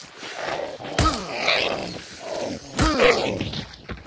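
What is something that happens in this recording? A shotgun fires loud, booming shots.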